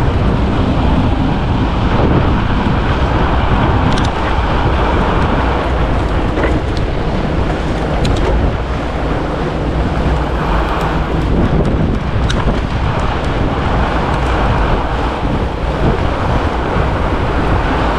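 Strong wind rushes past, buffeting loudly throughout.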